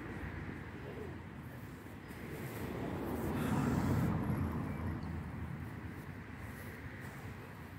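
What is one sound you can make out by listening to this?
Footsteps brush through grass close by.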